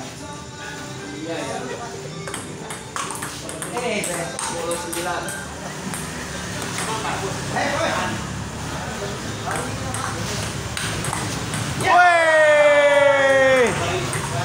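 A table tennis ball clicks back and forth across a table and paddles.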